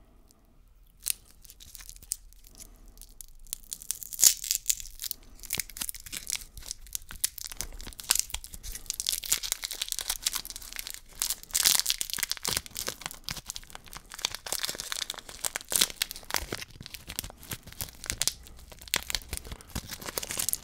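Plastic candy wrappers crinkle and rustle close by.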